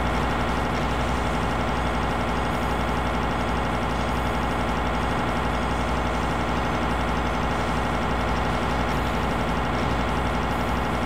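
A plasma gun fires rapid crackling electric bursts.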